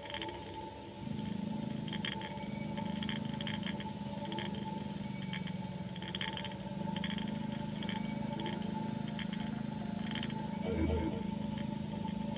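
A spaceship engine hums steadily.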